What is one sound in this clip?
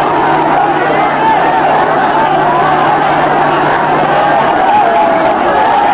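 A large crowd shouts and cheers.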